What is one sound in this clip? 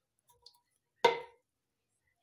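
A metal can is set down on a hard counter with a knock.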